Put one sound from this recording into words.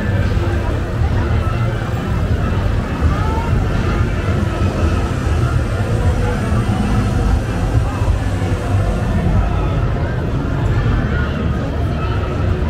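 A large crowd chatters outdoors on a busy street.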